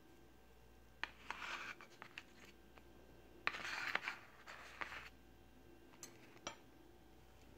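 A metal knife and fork clink lightly against a paper plate.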